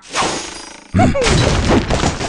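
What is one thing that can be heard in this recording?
A cartoon explosion bursts with a bang.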